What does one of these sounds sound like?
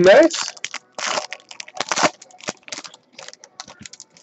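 A foil card pack crinkles and tears open.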